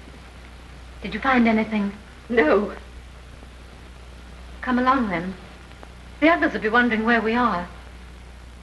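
A woman speaks in an agitated, raised voice.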